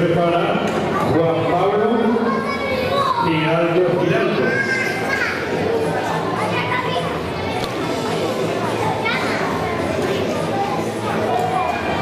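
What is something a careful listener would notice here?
A middle-aged man speaks with animation through a microphone in a reverberant hall.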